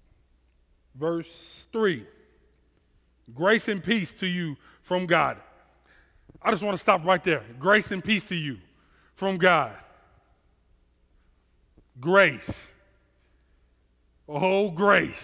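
A man speaks with animation through a headset microphone.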